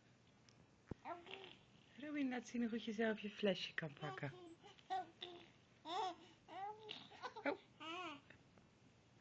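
A baby coos and babbles close by.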